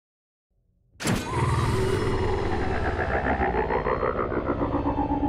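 A spaceship engine rumbles and hums.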